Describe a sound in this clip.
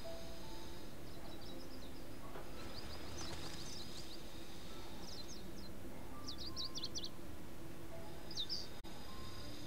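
A small bird chirps and twitters.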